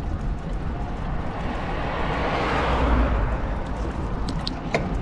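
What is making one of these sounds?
A second car approaches and swooshes past.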